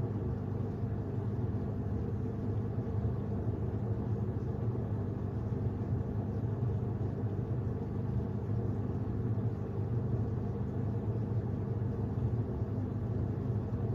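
A washing machine drum hums steadily as it turns.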